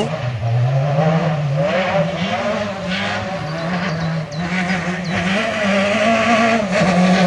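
A rally car engine roars and revs hard as the car races closer.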